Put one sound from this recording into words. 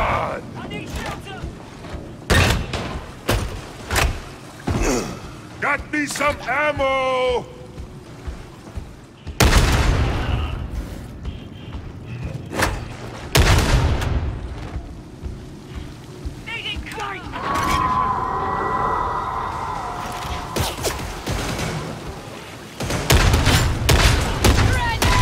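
Guns fire in short bursts of sharp shots.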